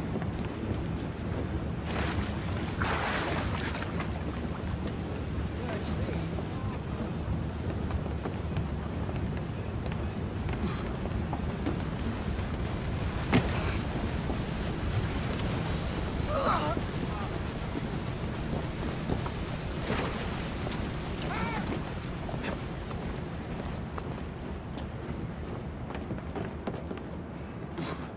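Footsteps run quickly across wooden boards.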